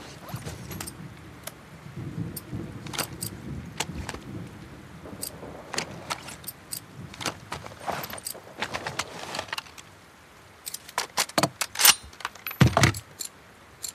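Metal parts of a gun click and clack sharply as they are handled.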